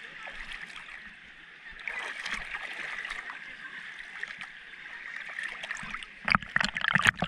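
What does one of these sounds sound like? Small waves lap gently in shallow seawater.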